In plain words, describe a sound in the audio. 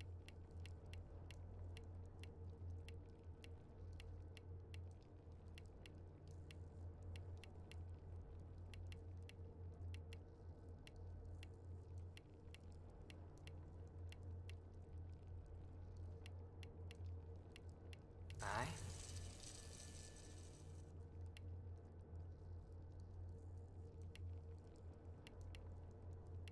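Soft clicks tick at a quick, steady pace.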